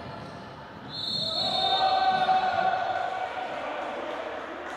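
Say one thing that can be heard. Spectators cheer loudly.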